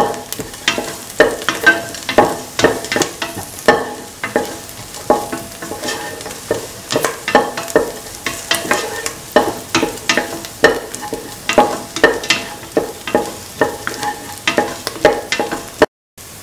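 Onions sizzle in a hot pan.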